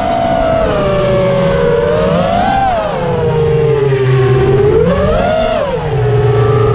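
The electric motors of a small racing quadcopter whine, rising and falling in pitch as the throttle changes.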